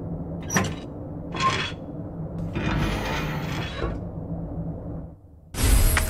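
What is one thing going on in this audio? A heavy metal safe door creaks open.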